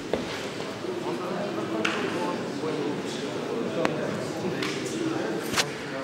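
A man speaks to a boxer at close range, in a large hall with echo.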